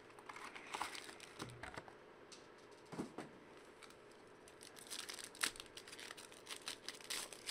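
Foil card wrappers crinkle and rustle as hands handle them.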